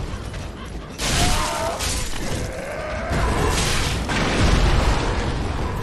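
Swords clash and strike in a short fight.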